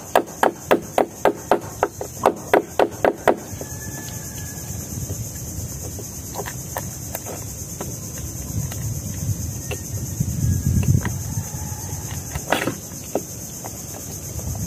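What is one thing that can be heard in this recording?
A metal knife taps and scrapes against hard clam shells.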